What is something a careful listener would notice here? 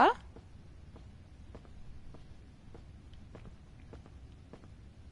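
Footsteps tap at a steady walking pace.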